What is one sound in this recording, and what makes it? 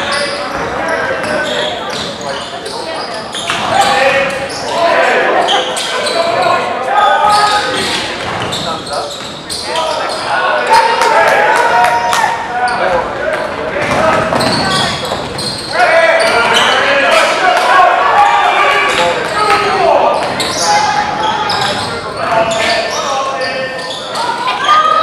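A crowd of spectators talks and cheers in an echoing gym.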